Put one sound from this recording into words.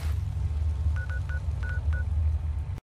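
A small electronic device gives short, quick beeps.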